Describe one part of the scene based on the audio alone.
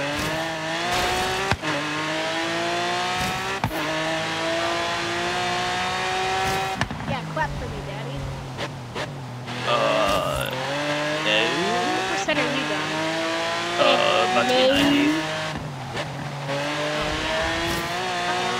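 A sports car engine roars and rises in pitch as it shifts through the gears.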